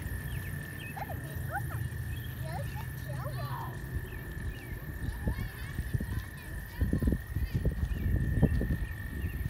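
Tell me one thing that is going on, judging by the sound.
Young girls chatter nearby.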